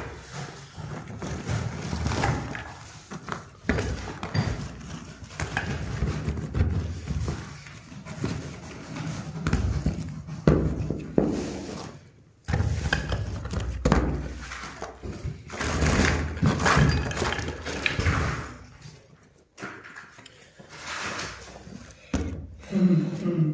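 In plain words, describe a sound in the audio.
A gloved hand scrapes and digs through loose rubble and grit.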